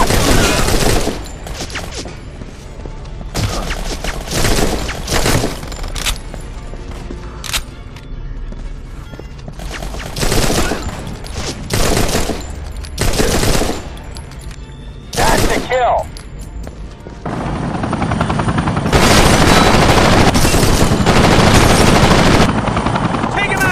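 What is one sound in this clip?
A video game rifle fires in bursts.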